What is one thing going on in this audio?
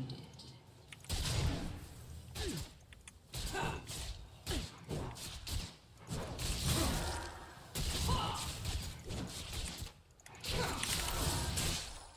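Game combat effects clash and crackle in quick bursts.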